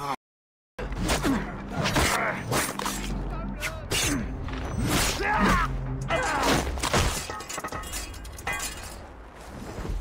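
Blows and blade clashes ring out in a fight.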